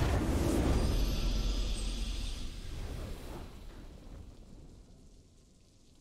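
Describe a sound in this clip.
A triumphant game victory fanfare swells and then fades away.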